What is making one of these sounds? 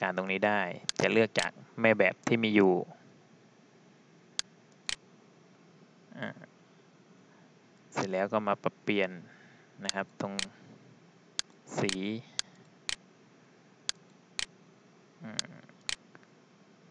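A computer mouse clicks several times.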